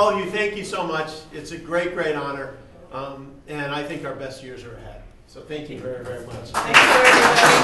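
A man speaks warmly to a small group up close.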